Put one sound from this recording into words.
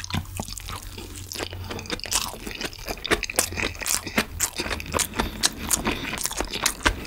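A man chews food noisily and wetly, close to a microphone.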